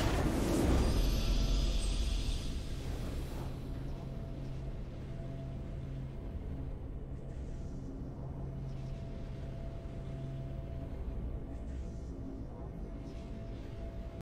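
Triumphant game music plays softly.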